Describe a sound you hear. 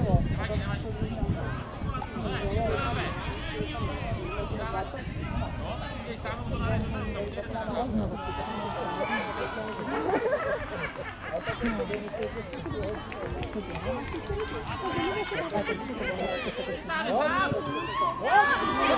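Girls shout and call out across an open field.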